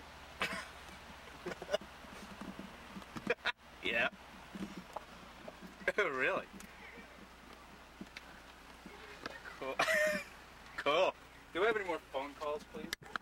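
A man laughs cheerfully, close by.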